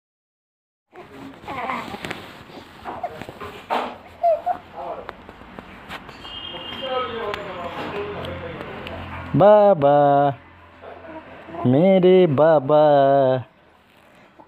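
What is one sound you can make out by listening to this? A baby coos and cries loudly close by.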